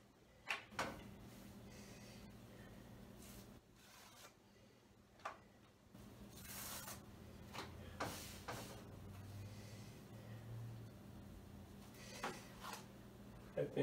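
Tortillas rustle and flap as they are handled.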